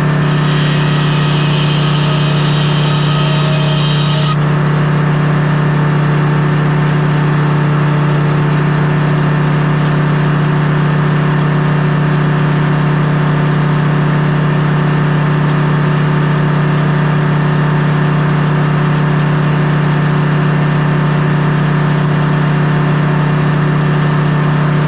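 A sawmill engine runs with a steady, low hum.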